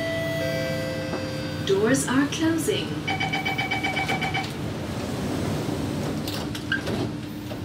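A train rumbles steadily while moving.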